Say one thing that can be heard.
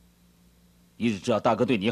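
A man speaks calmly and quietly.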